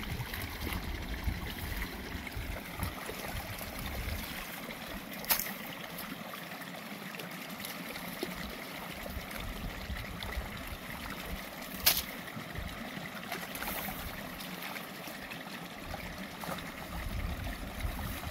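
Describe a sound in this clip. Rice plants rustle as they are pulled and bundled.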